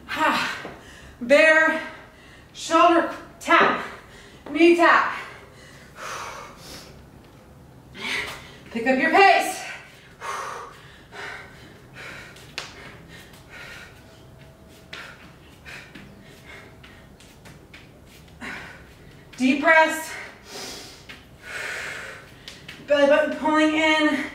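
A young woman speaks with energy, close and clear.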